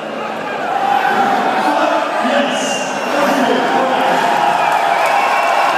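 A man shouts to the crowd through a microphone.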